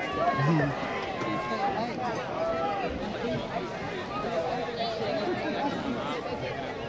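A crowd of players and spectators chatters and shouts outdoors at a distance.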